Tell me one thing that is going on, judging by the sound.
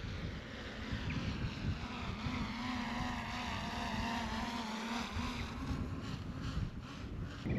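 A small drone whines as it flies past at a distance.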